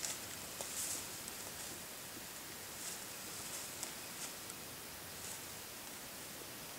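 A moose's hooves step through leaf litter.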